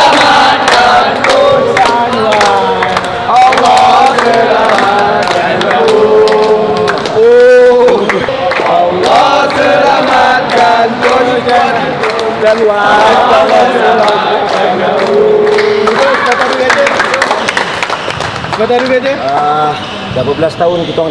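Several people clap their hands in rhythm.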